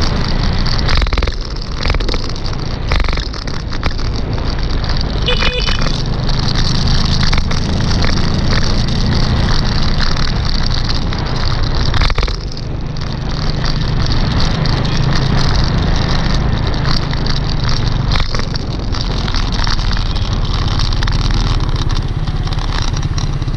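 Motorbikes drone past in light street traffic.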